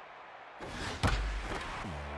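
A bat cracks against a ball.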